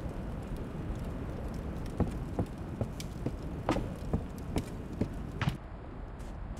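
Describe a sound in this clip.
A fire crackles in a hearth.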